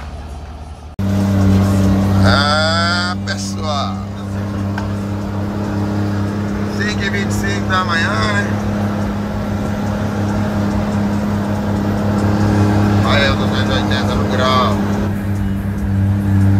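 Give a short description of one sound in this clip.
A truck engine drones loudly and steadily, heard from inside the cab.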